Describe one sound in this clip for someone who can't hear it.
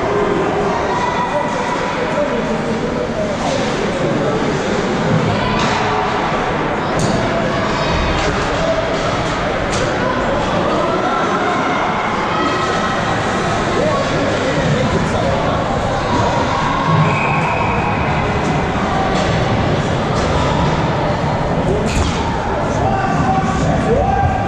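Skates scrape and hiss across the ice in a large echoing rink.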